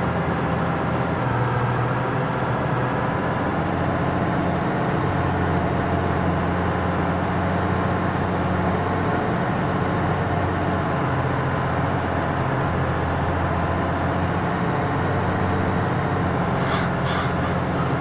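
A cultivator rattles through the soil.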